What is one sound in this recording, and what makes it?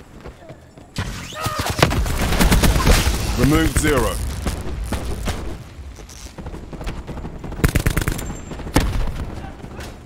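An automatic rifle fires.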